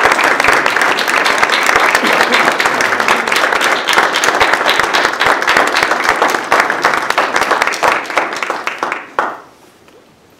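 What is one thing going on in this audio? A crowd applauds loudly and cheers in a large room.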